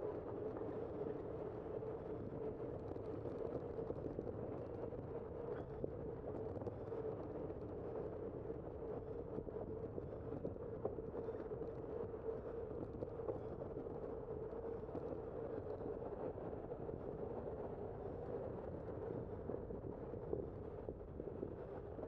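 Tyres roll steadily over pavement.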